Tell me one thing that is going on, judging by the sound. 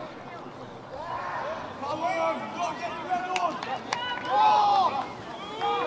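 A crowd of spectators cheers and shouts from the sideline.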